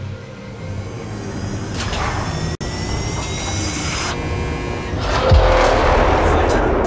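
A spaceship engine hums low and steadily.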